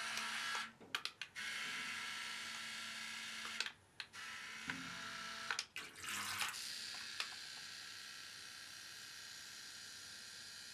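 A small toy motor whirs with a high, steady buzz.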